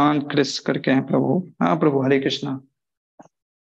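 A man speaks calmly into a microphone, heard over an online call.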